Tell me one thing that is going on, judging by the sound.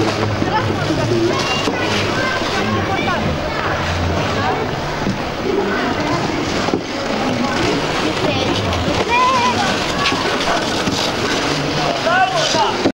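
Ice skates scrape and glide across ice.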